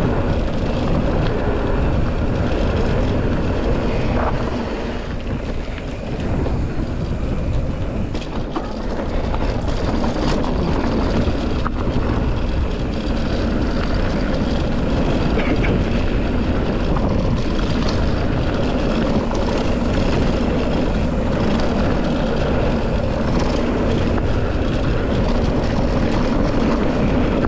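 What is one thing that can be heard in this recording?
Bike tyres crunch and rumble over a rough dirt trail.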